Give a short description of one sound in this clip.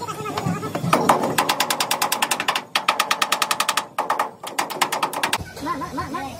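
A hammer chips rapidly at metal.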